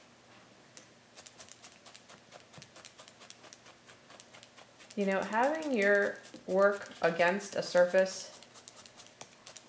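A felting needle pokes rapidly into wool with soft clicks.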